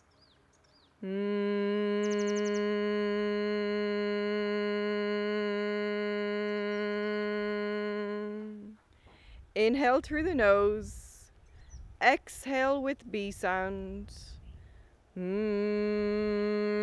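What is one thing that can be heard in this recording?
A man hums a long, steady low note.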